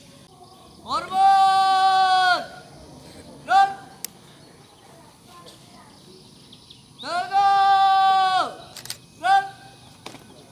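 A man shouts a drawn-out command across an open field.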